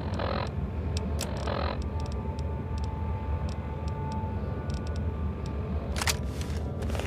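Electronic menu clicks and beeps sound.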